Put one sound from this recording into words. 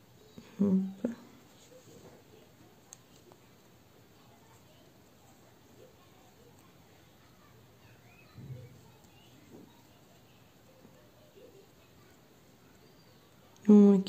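A crochet hook softly pulls thread through lace.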